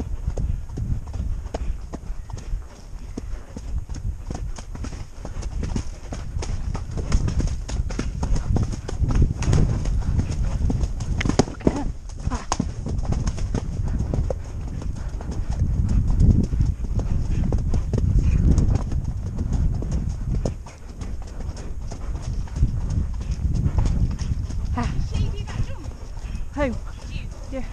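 A horse's hooves thud at a canter on a dirt track.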